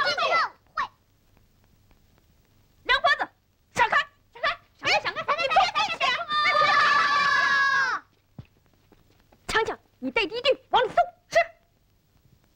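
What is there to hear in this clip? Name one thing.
Children shout and chatter excitedly close by.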